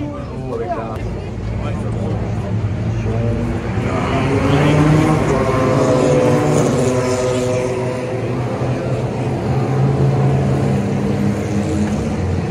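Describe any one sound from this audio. A crowd of spectators chatters nearby outdoors.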